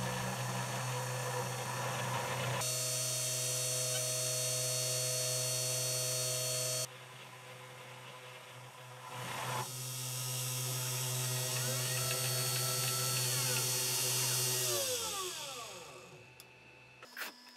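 A small milling machine's spindle whirs steadily at high speed, then slowly winds down.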